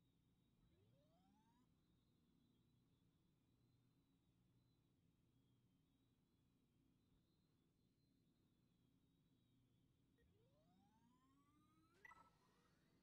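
A starfighter's engines whine upward as it boosts.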